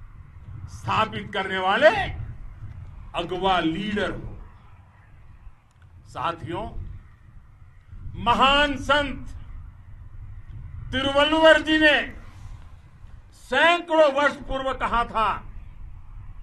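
An elderly man speaks forcefully into a microphone outdoors, in loud bursts with pauses between them.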